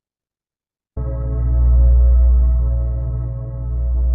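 Slow, steady meditative music plays with deep humming tones.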